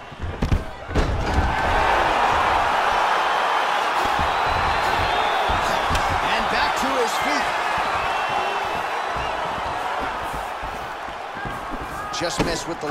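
A crowd roars and cheers loudly in a large arena.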